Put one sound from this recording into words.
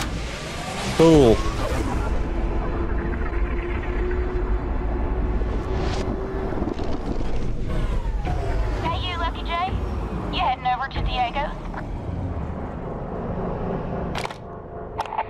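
A deep rushing roar swells as a spacecraft jumps through a portal.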